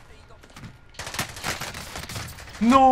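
Gunfire rattles in short bursts nearby.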